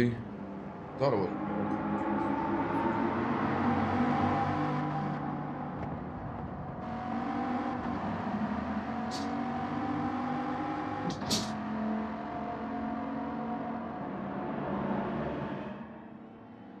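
A racing car engine hums steadily.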